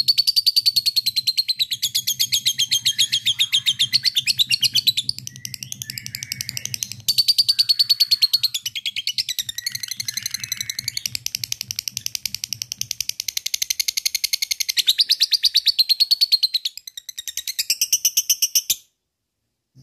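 A small parrot chatters rapidly with shrill, high chirps close by.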